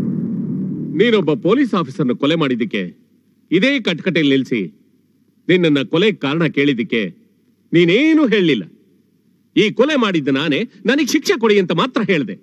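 A middle-aged man speaks forcefully and with animation, close by.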